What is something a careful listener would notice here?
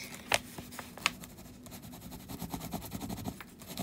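A crayon scratches across paper.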